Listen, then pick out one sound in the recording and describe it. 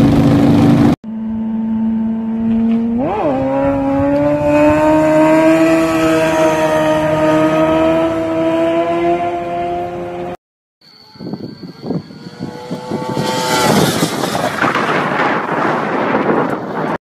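A motorcycle engine screams past at full throttle and fades away.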